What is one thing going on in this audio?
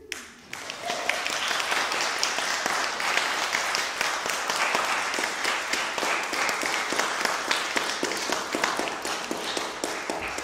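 A violin plays a lively tune with quick bow strokes.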